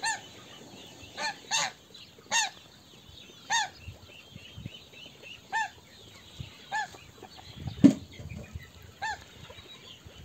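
Ducks quack loudly nearby, outdoors.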